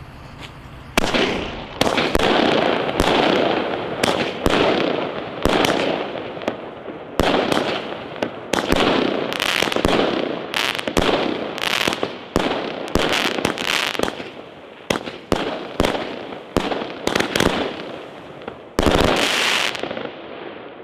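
Fireworks burst overhead with loud booms and bangs.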